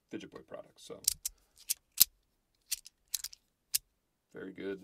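Small plastic pieces click and snap sharply.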